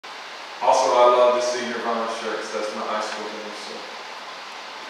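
A man speaks into a microphone, heard over loudspeakers in an echoing hall.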